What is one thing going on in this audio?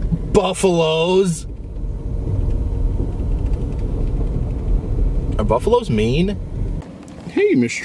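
A car engine rumbles as the car drives slowly over gravel.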